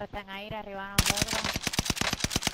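A heavy machine gun fires a rapid burst.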